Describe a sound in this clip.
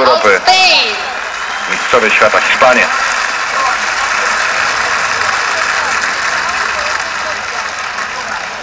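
A large crowd roars and cheers steadily in the background.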